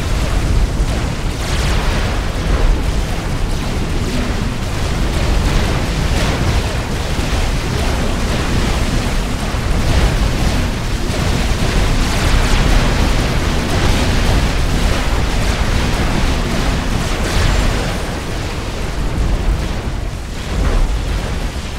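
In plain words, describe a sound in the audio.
Gunfire and explosions crackle in a battle.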